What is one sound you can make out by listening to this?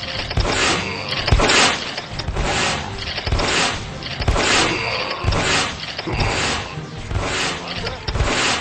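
Small explosions burst in a video game.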